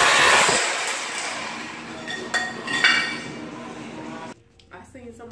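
A power chisel hammers loudly, chipping tile off a floor.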